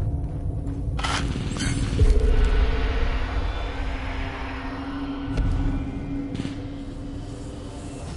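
An energy field crackles and hums loudly.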